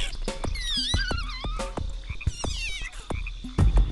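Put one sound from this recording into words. Small cartoon creatures chirp in high, warbling trills.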